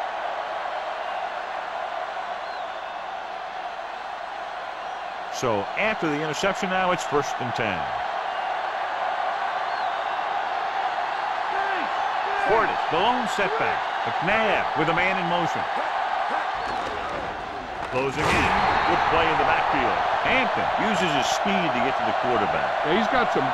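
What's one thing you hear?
A large crowd roars steadily in a stadium, swelling louder near the end.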